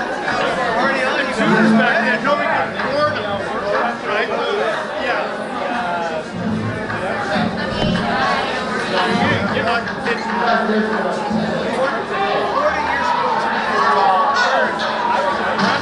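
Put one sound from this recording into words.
A crowd of men and women chatter all around indoors.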